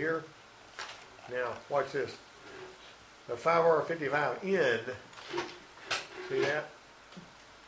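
A middle-aged man speaks close by in a conversational way, with pauses.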